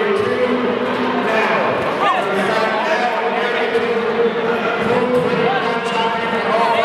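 A large crowd shouts and cheers in an echoing hall.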